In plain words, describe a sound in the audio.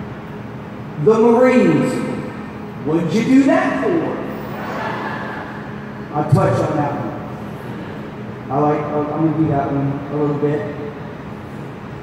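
A man speaks loudly through a loudspeaker in a large echoing hall.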